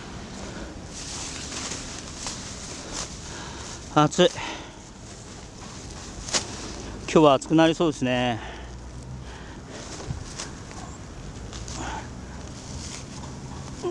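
Plastic sheeting crinkles and rustles as hands tug on it.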